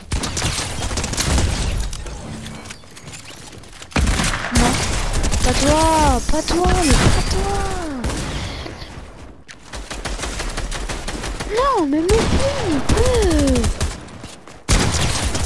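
Guns fire in rapid bursts, close by.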